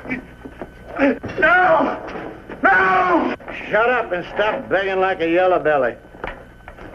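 A man shouts desperately close by.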